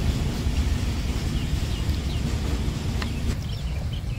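Bamboo sticks clatter against each other in a metal basin.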